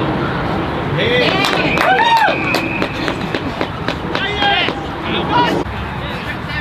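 A small crowd cheers outdoors.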